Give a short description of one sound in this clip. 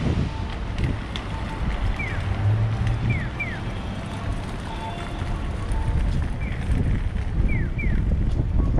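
Traffic hums steadily in the street.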